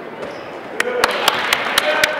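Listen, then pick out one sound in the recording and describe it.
A spectator claps hands close by.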